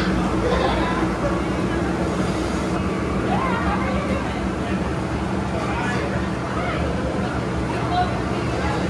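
Children chatter and shout in the background.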